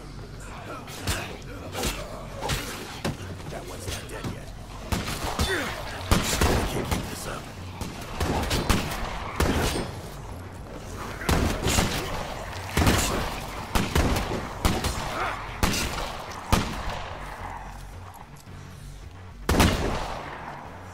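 Heavy blows thud and smack as a fighter strikes attackers.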